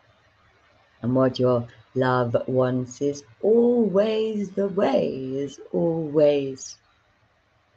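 A young woman speaks slowly and melodically, close to a microphone.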